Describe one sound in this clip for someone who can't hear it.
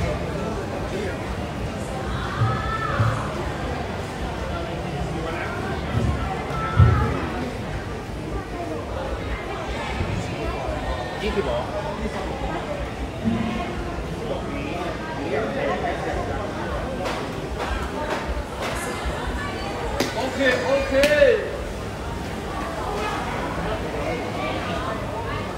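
Men and women chatter nearby and in the distance in a large, slightly echoing hall.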